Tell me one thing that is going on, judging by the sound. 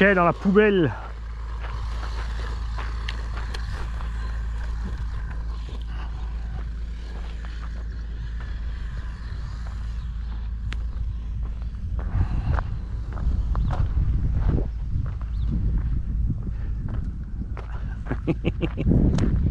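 Small tyres rumble and crunch over gravel and dirt.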